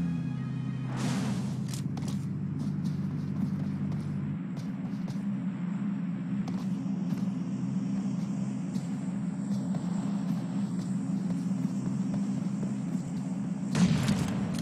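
Footsteps rustle through grass.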